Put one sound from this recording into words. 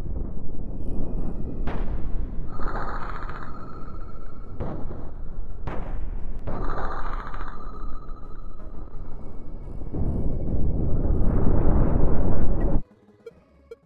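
Laser weapons hum and rumble in a space battle.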